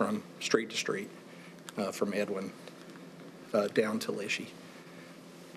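A middle-aged man speaks calmly into a microphone, in short bursts.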